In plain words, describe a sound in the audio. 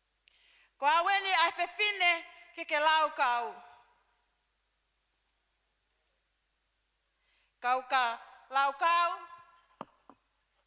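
A woman speaks into a microphone, heard through loudspeakers in an echoing hall.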